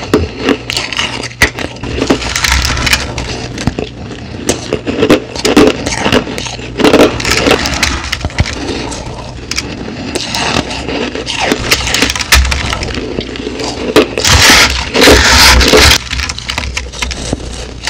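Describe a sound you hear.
Ice crunches loudly between teeth, close to a microphone.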